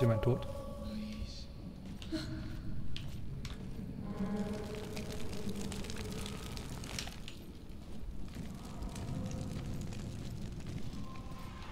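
A torch fire crackles softly.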